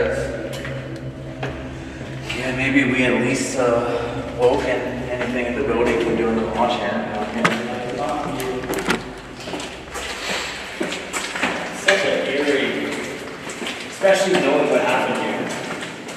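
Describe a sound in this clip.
Footsteps scuff on a hard floor in an echoing tunnel.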